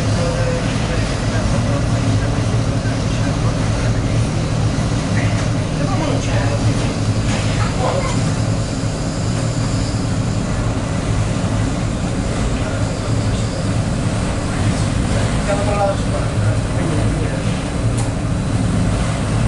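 A boat engine rumbles steadily from below.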